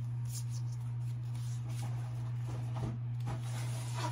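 Trading cards rustle in a boy's hands.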